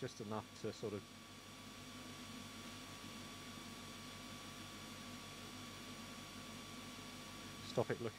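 An airbrush hisses softly as it sprays.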